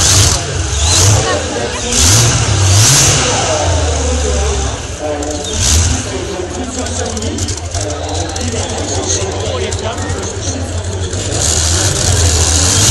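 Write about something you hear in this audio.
Race car engines roar and rumble loudly nearby.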